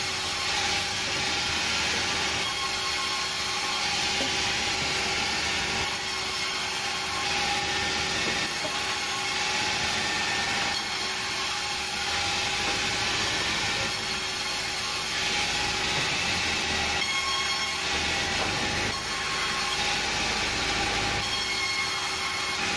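A band saw cuts through wooden logs.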